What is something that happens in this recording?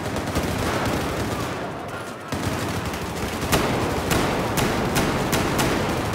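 Pistol shots crack one after another.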